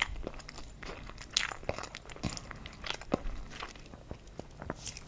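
A woman whispers softly, very close to a microphone.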